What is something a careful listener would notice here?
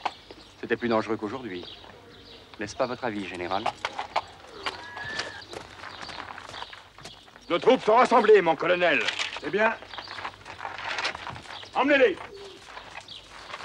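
A man speaks, close by.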